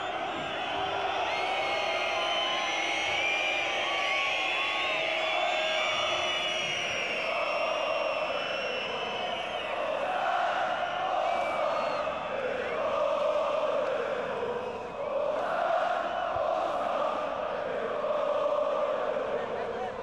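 A large stadium crowd chants and sings loudly throughout.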